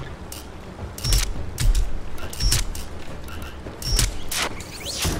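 Sharp clicks and chimes ring out as a dial turns.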